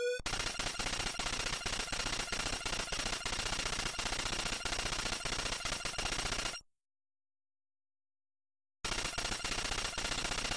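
Rapid electronic blips from a retro game tick in a steady stream, then pause and start again.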